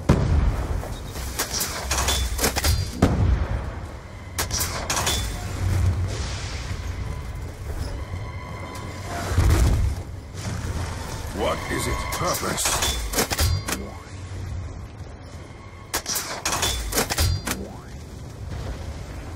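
An electric staff crackles and zaps, firing bursts of lightning.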